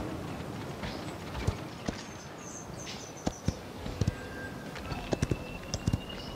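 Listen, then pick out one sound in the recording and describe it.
Short sharp clicks and taps sound now and then as a game character moves.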